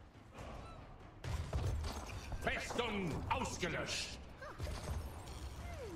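Magical blasts whoosh and crackle in a video game battle.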